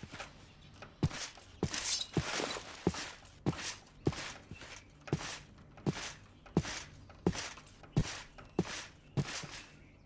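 Footsteps crunch on grass at a steady pace.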